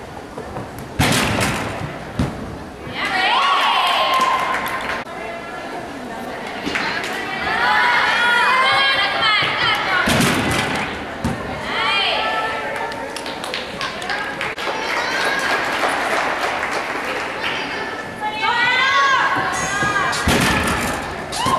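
A gymnast's feet thump hard on a springboard.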